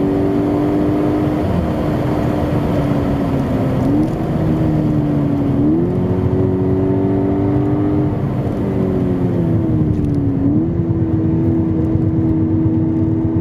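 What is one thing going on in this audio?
A car engine hums loudly from inside the cabin, its pitch rising and falling with gear changes.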